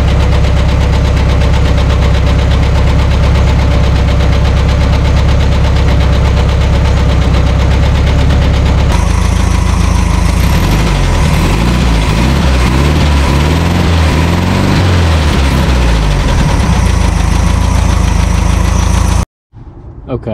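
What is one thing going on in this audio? A car engine idles loudly and roughly close by.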